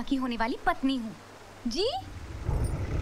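A young woman speaks close by with feeling.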